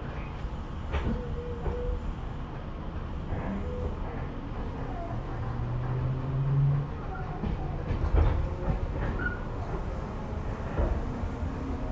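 Train wheels clank over rail joints.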